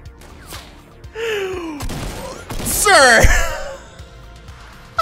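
A young man laughs loudly into a microphone.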